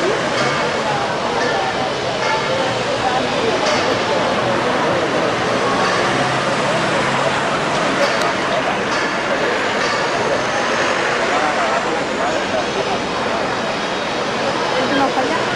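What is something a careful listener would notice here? A crowd murmurs and chatters in a busy street outdoors.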